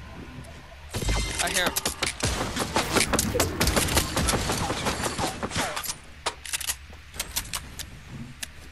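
Gunshots fire in rapid bursts close by.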